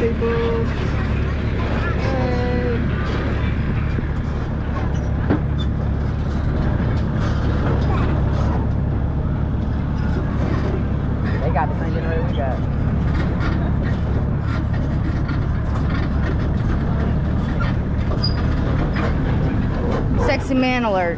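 Men and women chat in the background outdoors.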